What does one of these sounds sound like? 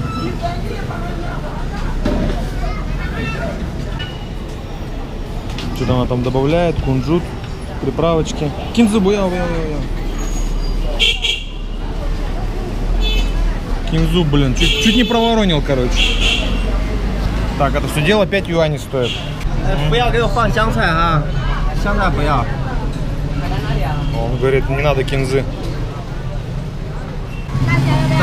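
A busy street crowd murmurs outdoors.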